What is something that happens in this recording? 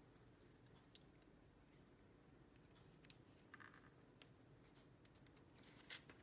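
Paper rustles and scrapes softly as hands press and slide a strip of card.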